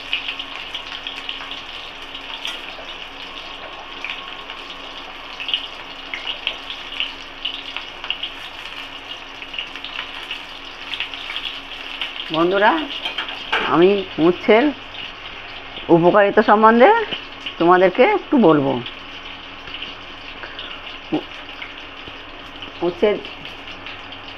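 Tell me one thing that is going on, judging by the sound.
Food sizzles and crackles in hot oil in a pan.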